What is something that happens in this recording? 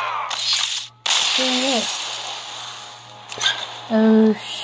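A video game plays a crashing explosion effect.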